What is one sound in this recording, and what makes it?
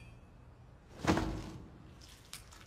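A man drops heavily to his knees on wet ground.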